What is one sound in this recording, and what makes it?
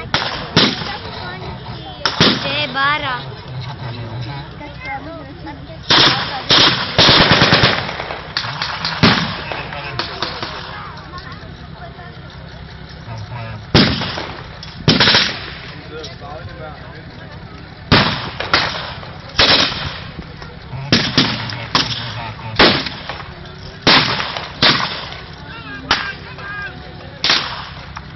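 Loud gunshots bang repeatedly outdoors, each with a short echo.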